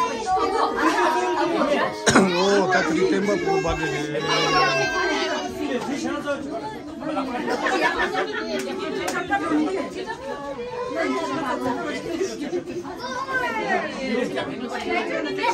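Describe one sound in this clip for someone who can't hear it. A group of people sing together nearby.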